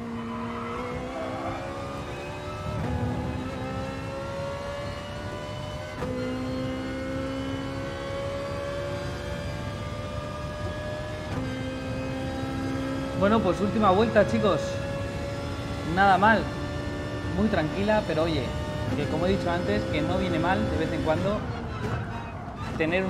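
A racing car engine revs high, rising in pitch through each gear and dropping at each shift.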